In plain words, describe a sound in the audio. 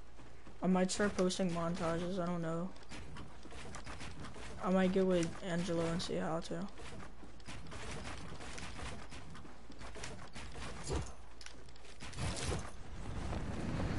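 Wooden panels snap into place in quick bursts.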